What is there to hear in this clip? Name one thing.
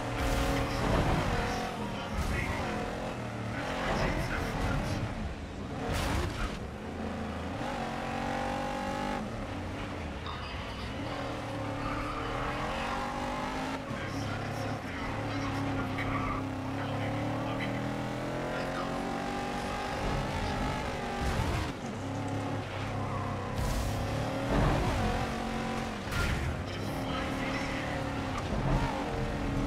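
A racing truck engine roars at full throttle.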